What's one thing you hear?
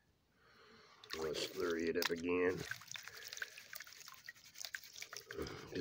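Water splashes as a pan dips into a bucket of water.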